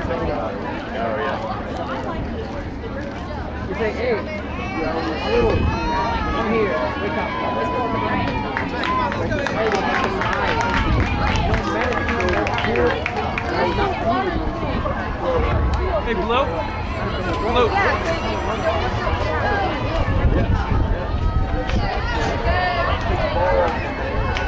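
A crowd of people chatter and call out close by, outdoors.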